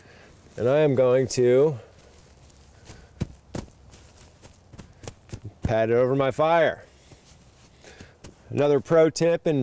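Hands rub and pat loose soil.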